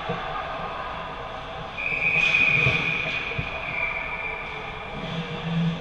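Hockey sticks clack against the ice and puck.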